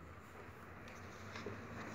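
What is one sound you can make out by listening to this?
A glue stick rubs over paper.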